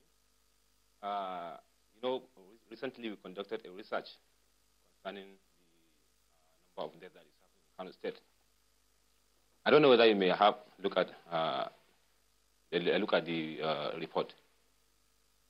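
A young man speaks with animation into a microphone, in short bursts with pauses.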